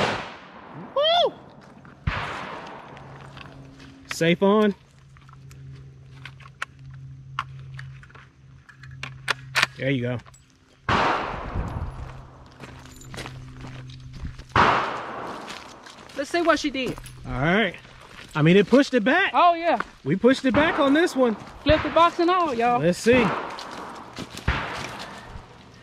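A rifle fires loud shots that echo outdoors.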